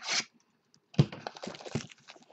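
A hand slides cardboard boxes across a table.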